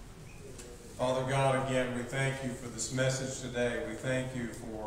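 A younger man speaks steadily into a microphone in an echoing room.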